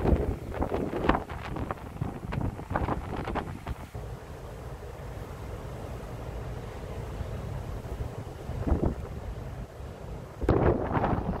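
Waves crash on a beach in the distance.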